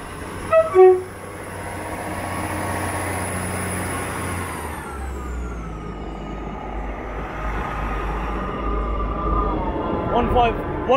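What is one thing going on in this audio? A train's engine hums steadily and then drops in pitch.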